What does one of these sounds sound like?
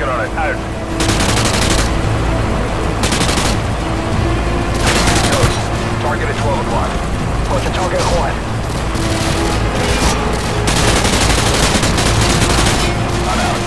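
Automatic rifle fire rattles in rapid bursts, close by.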